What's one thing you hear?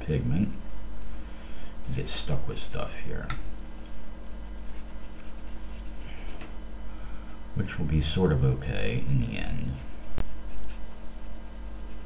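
A brush dabs softly on paper.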